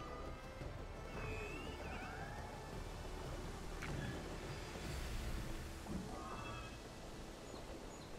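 Large wings flap in slow beats.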